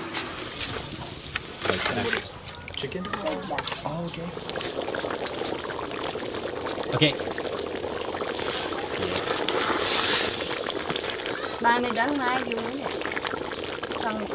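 A metal ladle stirs and scrapes inside a pot.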